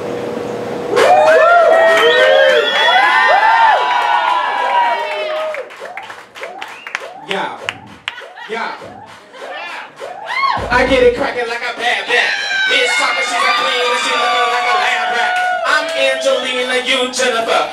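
A crowd whoops and cheers loudly in an echoing room.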